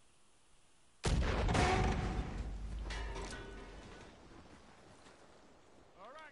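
An explosion booms close by and rumbles away.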